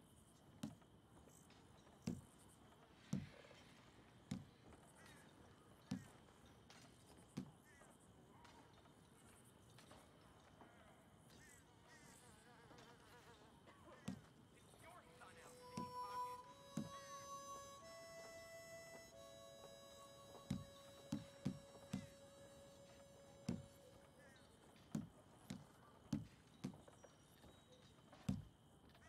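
Soft game menu clicks thump now and then as options change.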